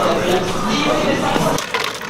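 A drink pours from a dispenser into a cup.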